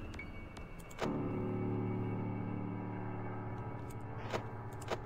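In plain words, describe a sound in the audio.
An electric fan whirs steadily.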